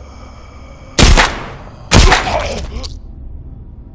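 A pistol fires two shots that ring out with echo.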